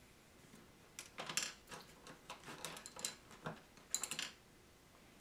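Hands handle a plastic model with light clicks and knocks.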